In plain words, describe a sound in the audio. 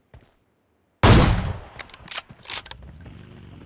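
A sniper rifle fires a single loud shot that echoes away.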